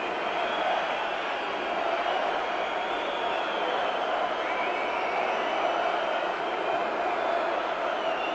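A live metal band plays loudly through a large sound system, heard distorted from the audience.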